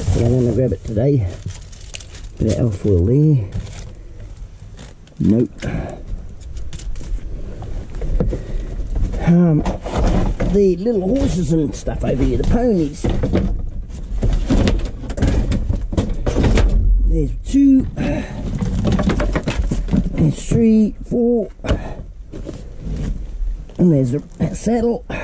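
Rubbish rustles and crinkles as it is shifted by hand.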